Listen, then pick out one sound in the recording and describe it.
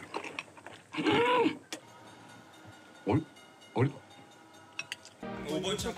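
A woman slurps noodles loudly.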